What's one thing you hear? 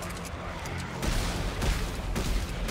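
An explosion bursts with a deep boom.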